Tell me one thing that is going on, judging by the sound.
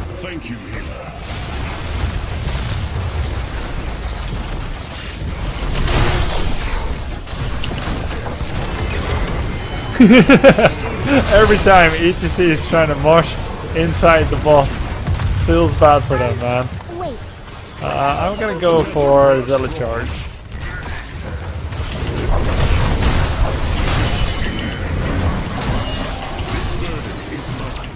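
Game effects clash and blast steadily.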